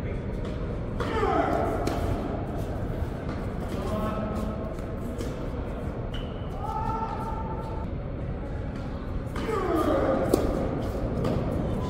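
Shoes squeak on the court.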